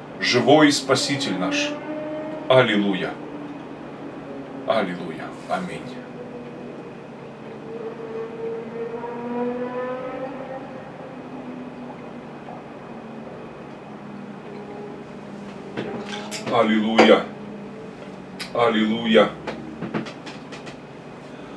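A middle-aged man speaks loudly and with feeling, close by.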